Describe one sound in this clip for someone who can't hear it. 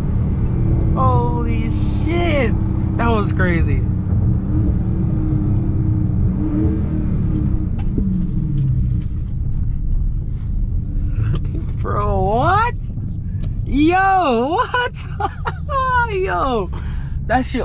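A car engine revs up and down sharply.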